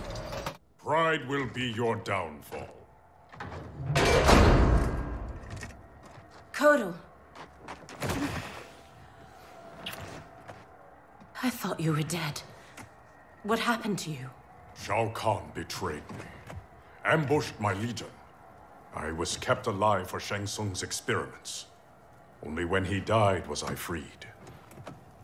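A man speaks in a deep, grave voice close by.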